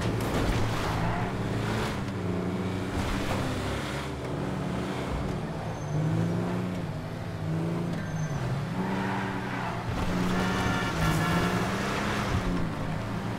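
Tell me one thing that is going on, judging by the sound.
A heavy truck engine drones steadily, its pitch rising and falling as it drives.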